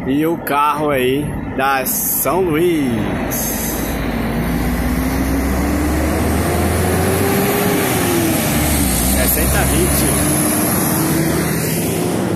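A bus engine rumbles and rises in pitch as a coach drives past close by.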